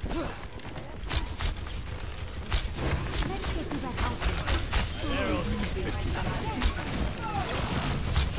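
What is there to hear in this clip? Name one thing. A bow twangs as arrows are loosed in quick shots.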